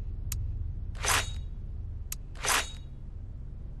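A soft whooshing swish sounds twice.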